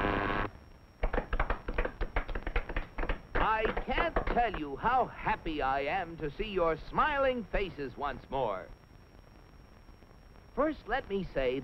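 A man talks in a comic, animated voice.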